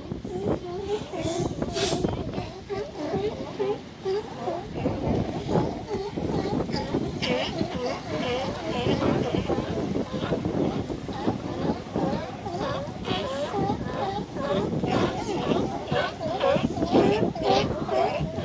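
Many sea lions bark loudly and hoarsely, close by and all at once.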